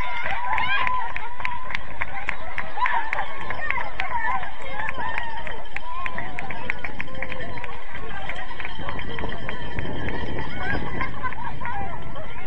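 Young women cheer and shout excitedly outdoors.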